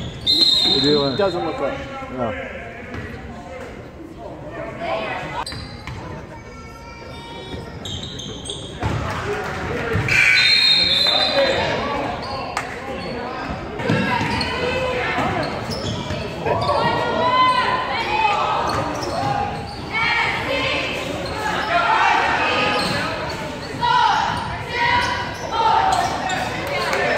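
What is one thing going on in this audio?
A crowd of spectators cheers and calls out in an echoing hall.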